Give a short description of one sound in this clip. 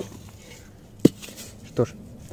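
A metal pot clanks as it is set down on the ground.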